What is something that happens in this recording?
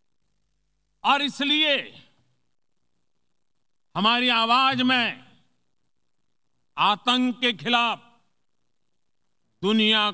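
A man speaks forcefully into a microphone in a large hall, with pauses between phrases.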